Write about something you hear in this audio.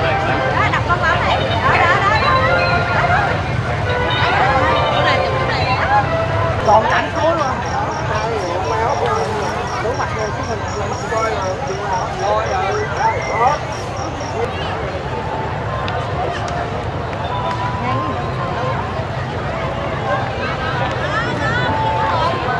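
A crowd of men, women and children chatters all around outdoors.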